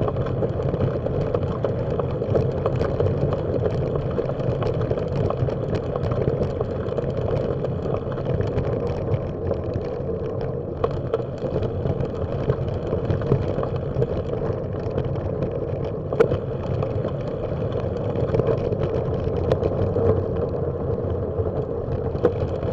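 Bicycle tyres roll steadily over a rough paved path.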